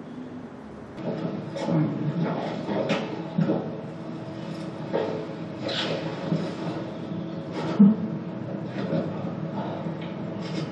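A woman sobs nearby.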